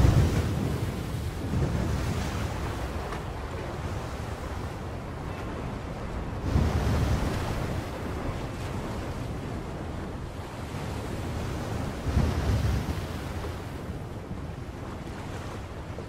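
Rough waves surge and crash against rocks, with loud swells rising every few seconds.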